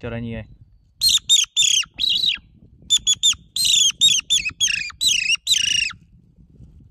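A young man blows a game call in quick, high, wavering squeals.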